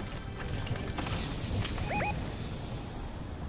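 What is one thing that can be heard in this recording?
A treasure chest bursts open with a bright shimmering chime.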